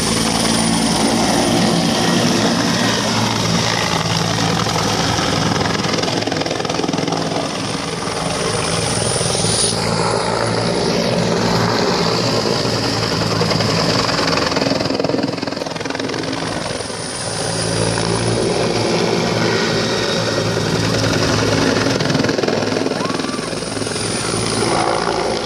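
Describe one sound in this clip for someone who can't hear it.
A military utility helicopter's rotor blades thump as the helicopter flies low and banks overhead.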